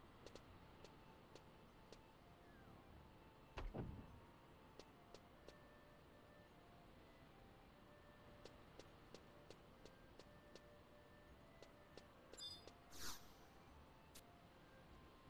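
Footsteps tap softly on stone.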